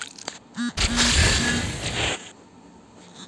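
A fiery blast booms and crackles in a video game.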